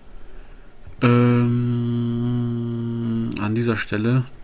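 A young man draws out a long, loud sung note.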